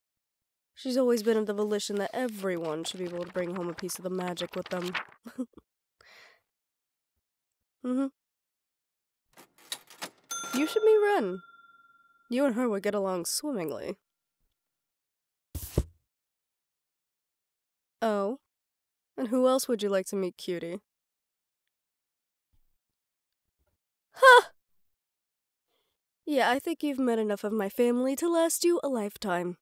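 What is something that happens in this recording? A young woman speaks expressively, close to a microphone, in short bursts with pauses.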